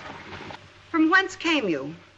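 A young woman speaks clearly.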